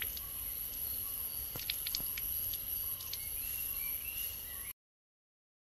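Insects chirp steadily outdoors.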